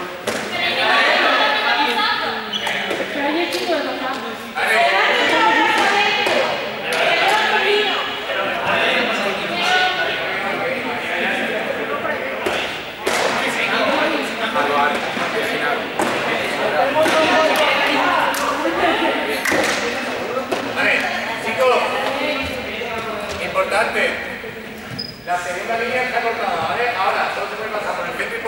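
Sneakers squeak and patter on a hard floor as players run.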